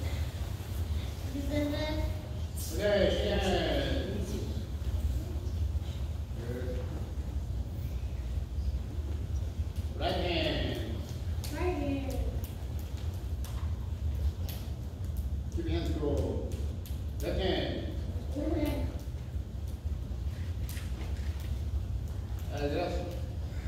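A man loudly calls out commands in a large echoing hall.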